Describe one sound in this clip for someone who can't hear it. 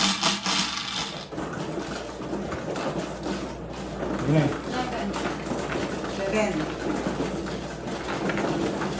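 A table machine hums and clicks as walls of tiles rise up.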